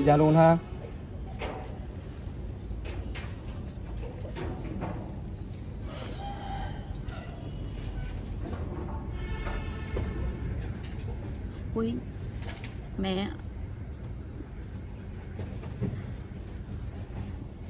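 A middle-aged woman sobs and speaks tearfully close by.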